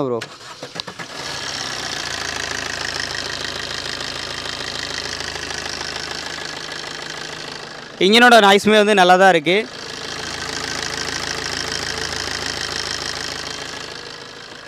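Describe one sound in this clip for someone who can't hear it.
A diesel engine idles with a steady rattling hum.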